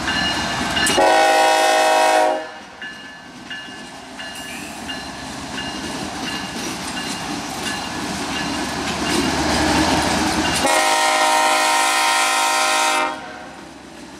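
A locomotive horn blasts loudly twice.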